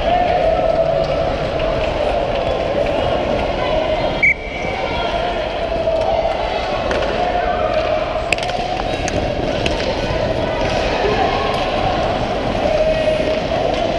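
Hockey sticks clack against the ice and a puck.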